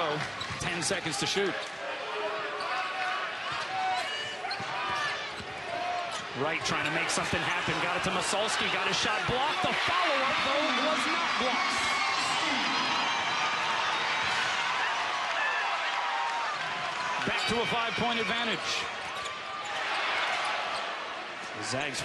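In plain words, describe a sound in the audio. A large indoor crowd cheers and roars, swelling loudly after a basket.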